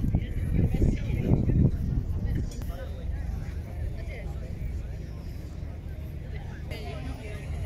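A crowd of people chat quietly in the distance.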